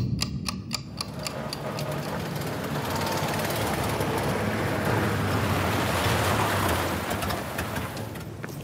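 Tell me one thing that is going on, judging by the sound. A car drives slowly along a wet street, tyres hissing on the water.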